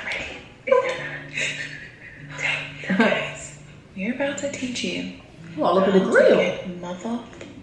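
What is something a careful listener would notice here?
A young woman talks animatedly and close to the microphone.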